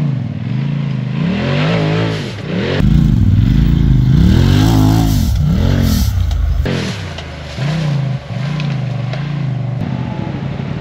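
A car engine revs hard and roars close by.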